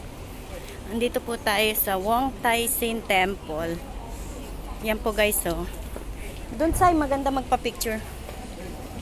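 A young man speaks close by, casually.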